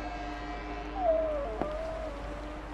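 A wooden cabinet door creaks and clicks open.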